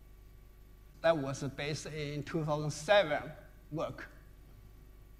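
A man speaks briefly through a microphone in a large hall.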